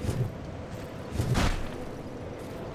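A heavy sword swishes through the air.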